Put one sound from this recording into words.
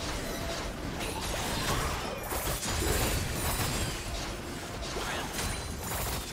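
Weapons clash and hit with sharp impacts.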